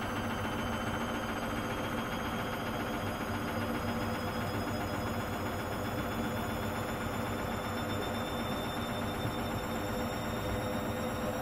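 Laundry tumbles inside a washing machine drum.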